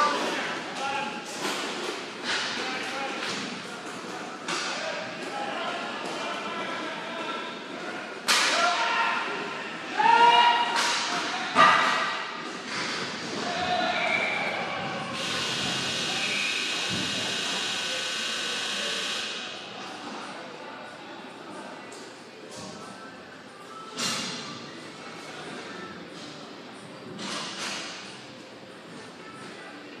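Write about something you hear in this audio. Skate wheels roll across a hard floor.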